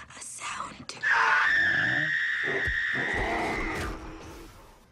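A creature lets out a loud, shrill screech.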